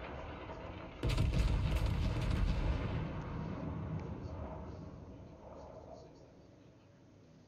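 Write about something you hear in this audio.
Heavy naval guns fire with a deep boom that rumbles away.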